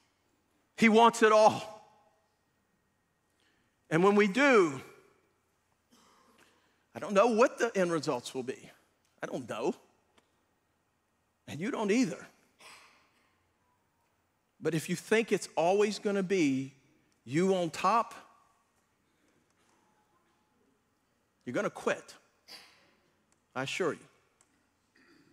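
A middle-aged man preaches with animation through a microphone, in bursts with pauses.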